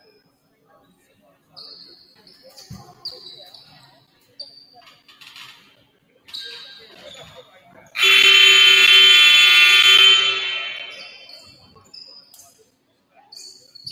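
A small crowd chats quietly in an echoing gym.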